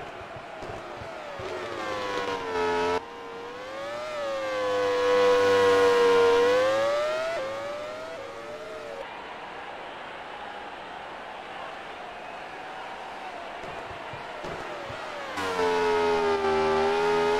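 A racing car engine whines loudly, its pitch rising and falling as it shifts gears.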